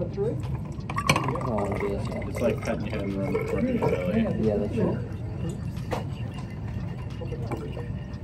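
Water pours into a glass cylinder.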